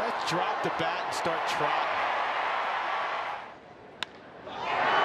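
A stadium crowd cheers loudly, fades, then swells again.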